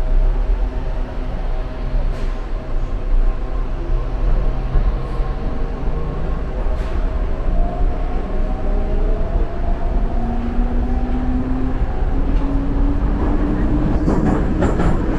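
A subway train rumbles and roars steadily along the tracks.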